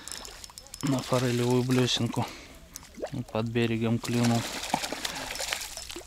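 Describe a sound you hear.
A fish splashes at the surface of the water.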